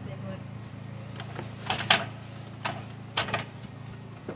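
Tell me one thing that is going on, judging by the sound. Wooden boards knock and clatter.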